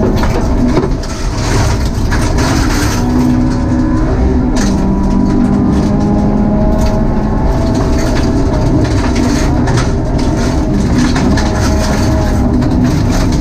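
Gravel rattles and thuds against the car's underside.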